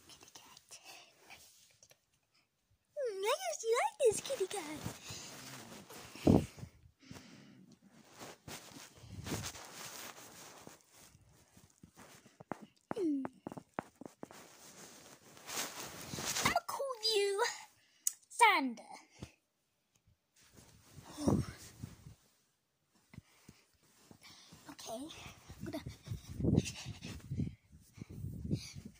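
A phone's microphone rustles and bumps as it is moved about.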